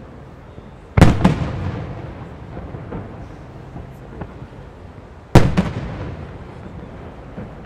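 Fireworks burst with loud booms that echo and rumble away.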